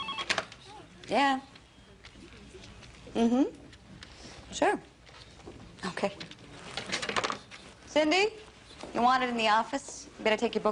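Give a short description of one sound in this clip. A young woman speaks into a phone in short, tense phrases.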